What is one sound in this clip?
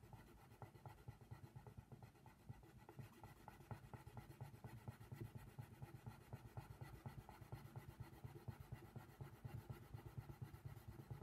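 A coloured pencil scratches rapidly and closely on paper.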